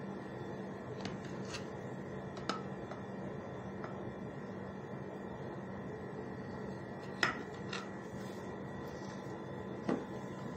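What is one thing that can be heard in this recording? A knife taps and scrapes against a glass dish.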